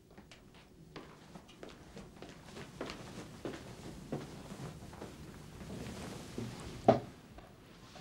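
Footsteps shuffle softly across a floor.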